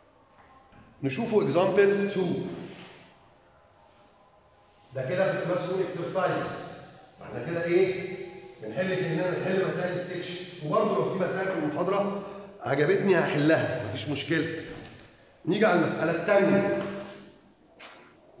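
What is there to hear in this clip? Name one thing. A middle-aged man speaks with animation, like a lecture.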